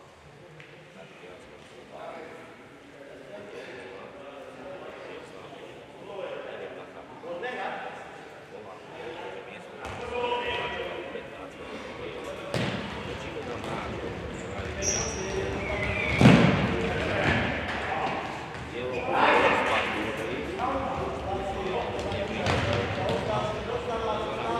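Players' shoes squeak on an indoor court in a large echoing hall.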